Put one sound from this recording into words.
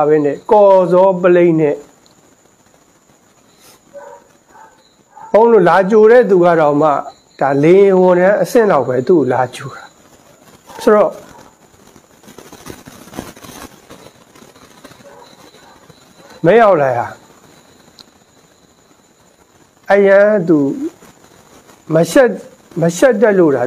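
A man speaks calmly into a nearby microphone, in short bursts with pauses.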